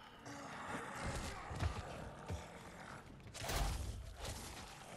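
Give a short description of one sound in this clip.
Heavy blows thud wetly against a body.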